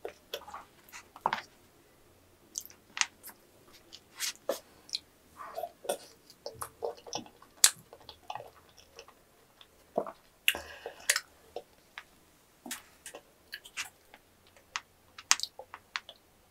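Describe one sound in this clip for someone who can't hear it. A plastic spoon scrapes ice cream in a cup.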